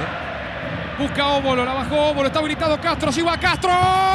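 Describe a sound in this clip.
A large crowd cheers in a stadium.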